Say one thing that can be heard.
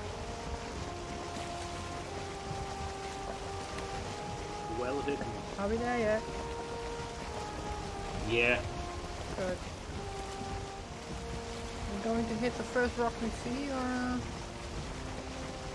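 Waves splash against a sailing boat's hull.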